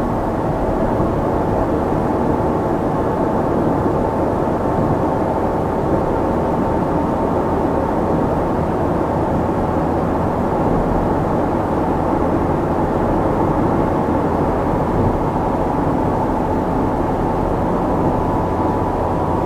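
Tyres roll and rumble on the road.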